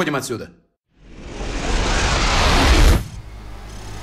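A rushing whoosh swells loudly and then cuts off.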